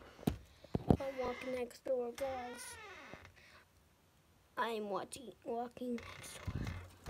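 A young boy speaks close to the microphone.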